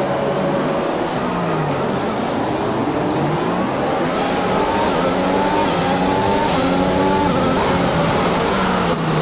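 A racing car engine roars as the car speeds away, climbing through gear changes.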